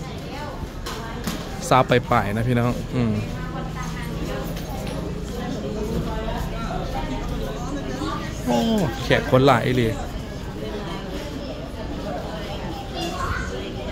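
A crowd of men and women murmurs quietly in the background.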